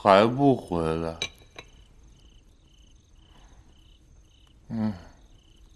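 A young man speaks up close with a questioning tone.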